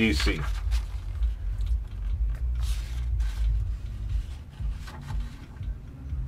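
Fingers rub and slide across glossy paper.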